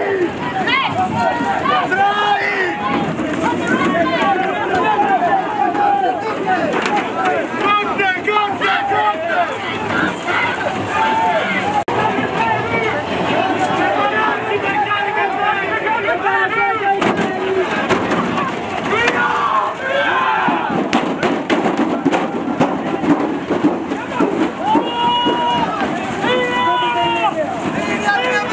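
A crowd of men shouts and jeers loudly outdoors.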